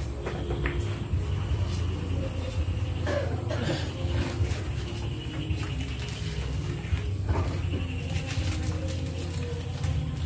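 Men talk casually nearby in a room.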